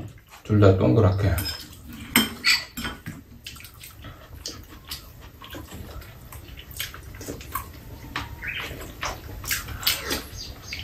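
Spoons clink against bowls and plates.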